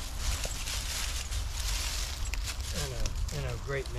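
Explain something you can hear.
Dry leaves rustle underfoot.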